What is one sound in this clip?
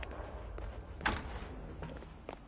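A door swings open with a thud.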